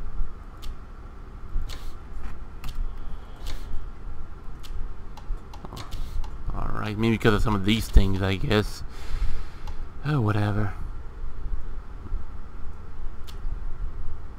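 Short soft clicks tick now and then as menu items are selected.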